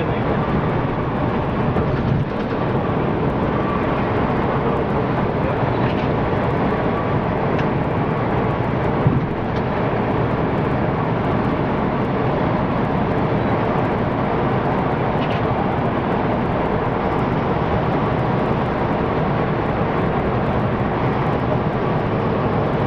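A truck engine drones loudly from inside the cab.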